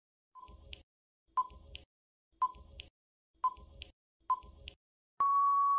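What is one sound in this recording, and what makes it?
A timer ticks steadily, once a second.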